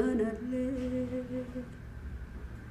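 A woman sings a long, held note into a microphone.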